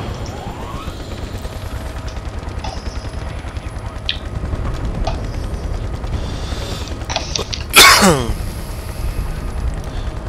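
A helicopter's rotor thuds steadily and low.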